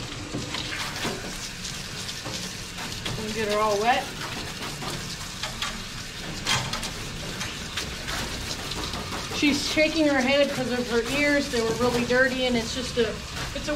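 Water sprays from a hose and splashes.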